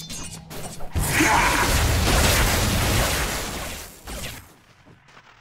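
A loud magical blast whooshes and crackles.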